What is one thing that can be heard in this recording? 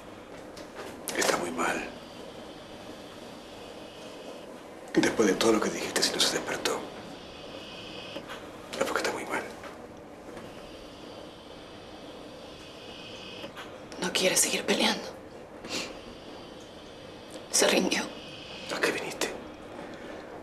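A man speaks tensely and angrily, close by.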